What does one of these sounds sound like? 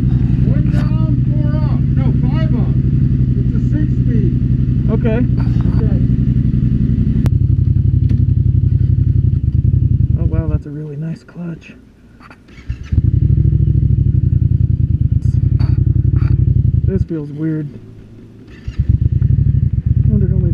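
A motorcycle engine rumbles close by, revving and easing off.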